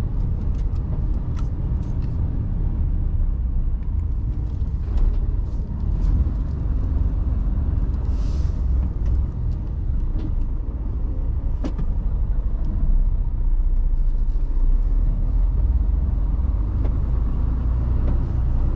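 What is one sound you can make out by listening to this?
A truck's tyres rumble over paving stones.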